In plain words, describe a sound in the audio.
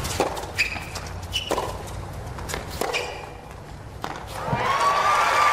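Tennis balls are struck with sharp pops in a rally.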